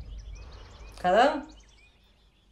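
A young woman exclaims briefly nearby.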